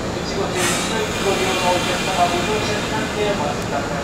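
Train brakes squeal and screech as the train slows.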